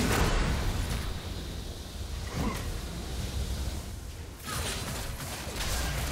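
Magic spell effects whoosh and crackle in a fast fight.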